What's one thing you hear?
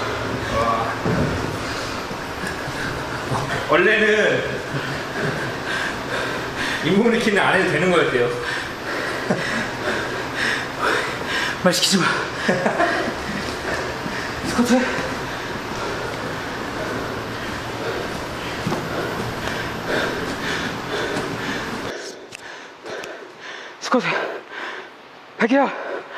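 A man talks with animation, close by.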